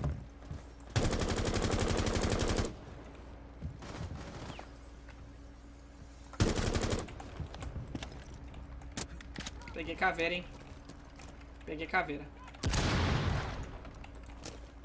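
A rifle fires in bursts of rapid shots.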